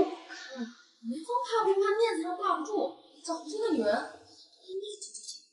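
A young woman speaks sharply.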